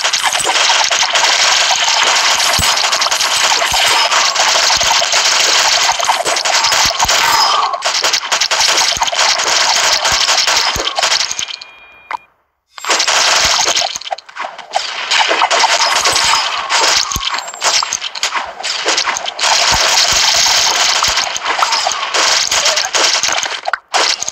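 Rapid electronic shooting and hit sounds crackle without pause.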